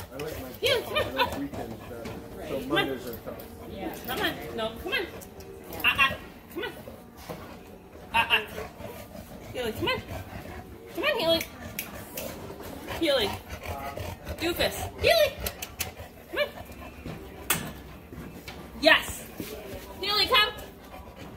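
A young woman talks to a dog close by in a soft, coaxing voice.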